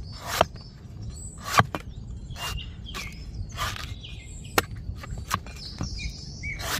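A cleaver chops sharply into a coconut's husk.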